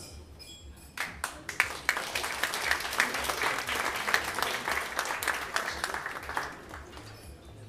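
An audience applauds loudly, then the applause dies away.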